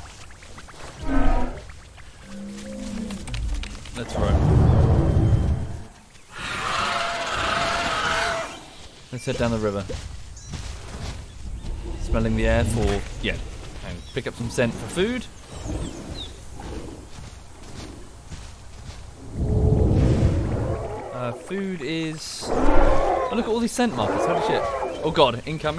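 Large dinosaurs bellow and call loudly.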